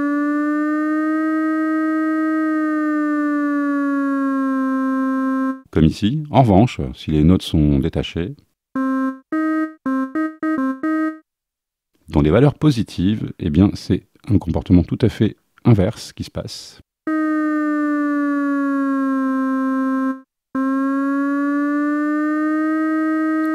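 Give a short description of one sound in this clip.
A synthesizer plays a sustained, droning tone that slowly bends in pitch.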